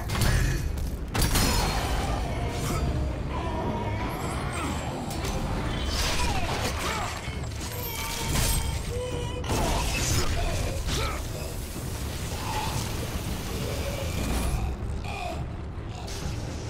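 Blades slash and strike flesh with heavy impacts.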